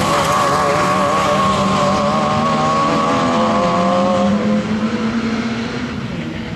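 A rally car engine revs hard and fades as the car speeds away.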